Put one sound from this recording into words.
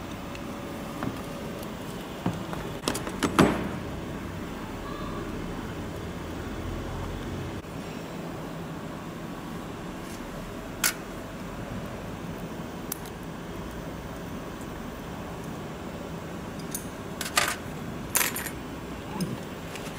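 Metal tools clink and knock against a metal fixture.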